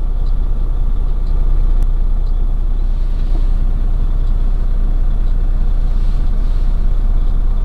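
Tyres rumble over a rough gravel road.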